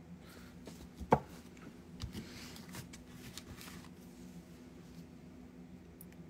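Paper rustles under handling.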